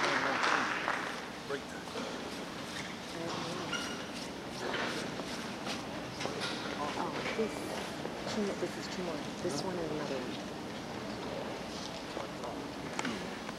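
Adult men and women chatter close by.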